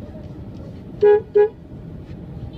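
A motor rickshaw horn honks twice, loud and short.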